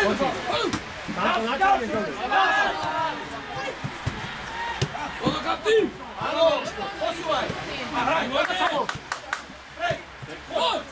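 Young boys shout and call to each other outdoors.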